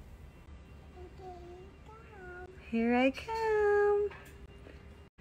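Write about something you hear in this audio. A young child speaks softly close by.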